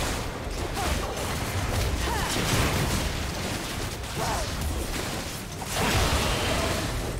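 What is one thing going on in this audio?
Magic spells whoosh and crackle during a fantasy battle.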